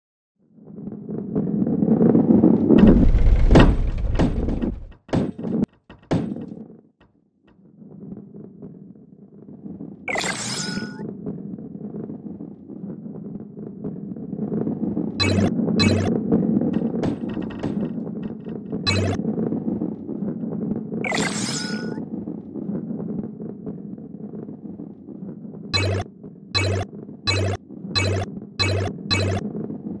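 A heavy ball rolls with a low rumble along a wooden track.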